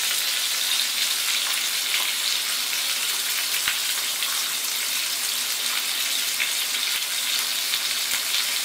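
Oil sizzles and crackles steadily in a hot pan.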